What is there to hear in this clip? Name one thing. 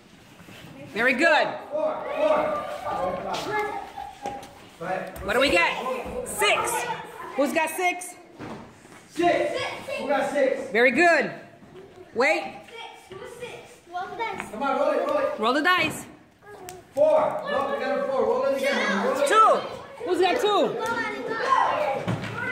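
Young girls talk and call out excitedly close by.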